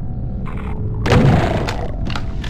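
A single loud gunshot booms.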